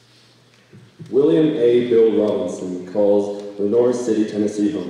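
A young man speaks calmly into a microphone over loudspeakers in a large hall.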